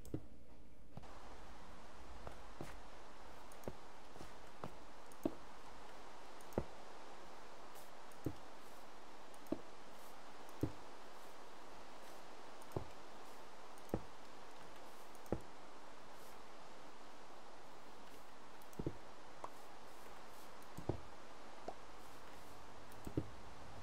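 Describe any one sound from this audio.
Rain falls steadily with a soft hiss.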